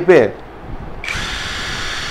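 A battery pack clicks into a power tool.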